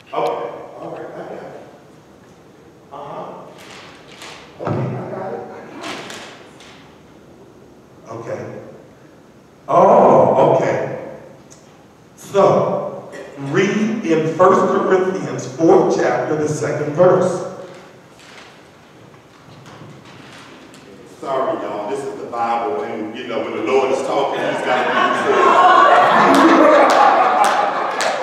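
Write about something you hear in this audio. A man speaks with animation into a microphone, heard through a loudspeaker in an echoing hall.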